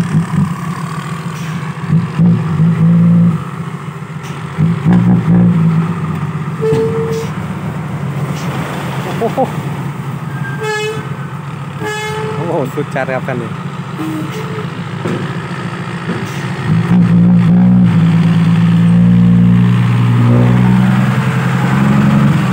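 A diesel truck engine rumbles steadily close by, growing louder near the end.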